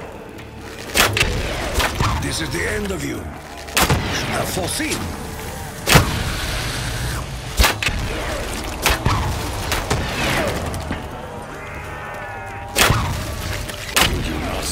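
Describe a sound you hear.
A bow twangs as arrows are loosed with fiery bursts.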